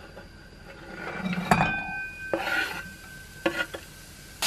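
Chopped food slides into a pan with a soft rattle.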